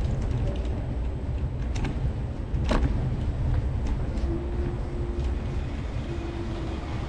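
Footsteps tap on pavement at a walking pace.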